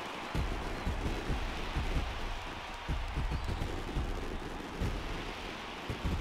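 A large crowd cheers and roars throughout a stadium.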